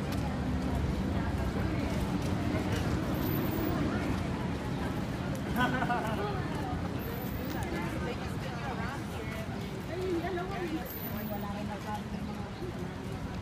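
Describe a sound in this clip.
Adults talk in passing nearby, their voices murmuring.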